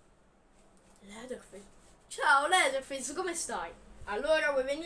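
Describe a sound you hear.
A boy talks close by, with animation.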